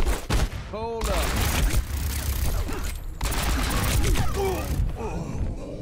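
A pistol fires a rapid burst of loud shots.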